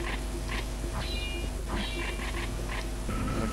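Short bright chimes ring out as items are picked up.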